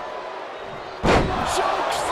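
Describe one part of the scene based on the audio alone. A heavy thud sounds as a body slams onto the ring mat.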